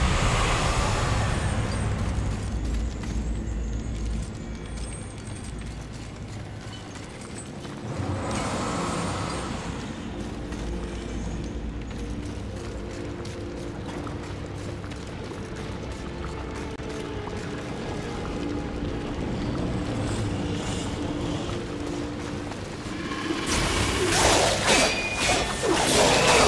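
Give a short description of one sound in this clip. Quick footsteps patter on stone.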